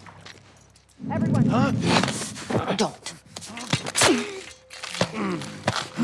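A man grunts and cries out while struggling close by.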